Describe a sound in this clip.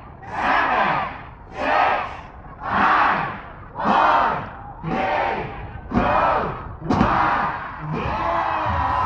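A large crowd chants loudly in unison in short rhythmic bursts.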